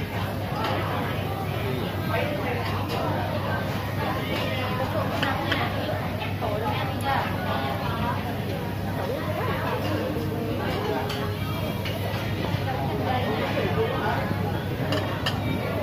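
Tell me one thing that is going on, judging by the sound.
Many voices chatter in a busy, crowded room.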